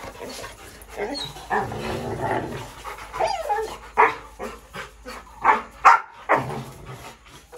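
Dogs bark loudly and close by.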